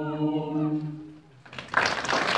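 A choir sings a held final chord in an echoing hall.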